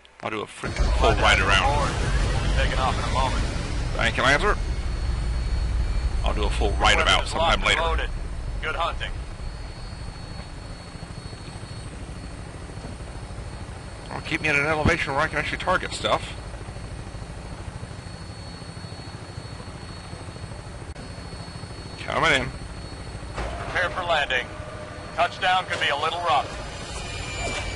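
A helicopter's engine and rotor drone steadily in flight.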